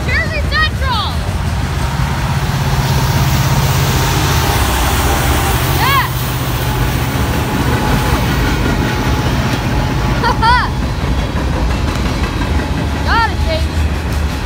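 Train wheels squeal sharply on the rails now and then.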